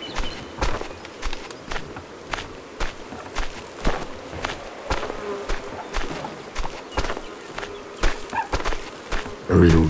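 A plough scrapes through earth.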